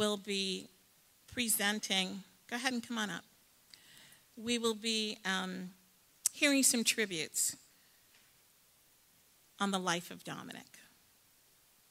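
A woman speaks slowly into a microphone over loudspeakers in a large hall.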